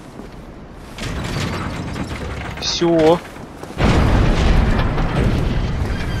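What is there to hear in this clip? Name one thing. A heavy mechanism rumbles and grinds.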